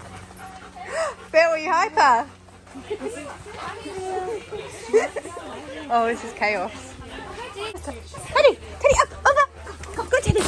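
A dog whines and yelps playfully.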